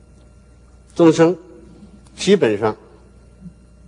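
An elderly man speaks slowly and deliberately through a microphone in a large hall.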